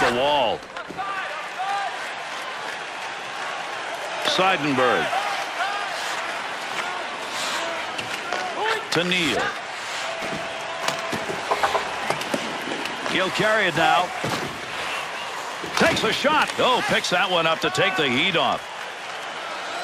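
A hockey stick clacks against a puck.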